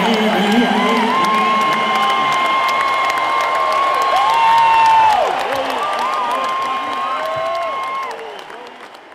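A man sings long held notes into a microphone on a loud stage.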